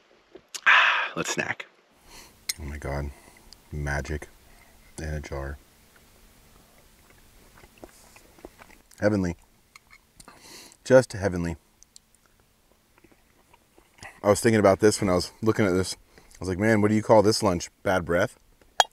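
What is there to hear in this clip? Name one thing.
A young man talks casually up close.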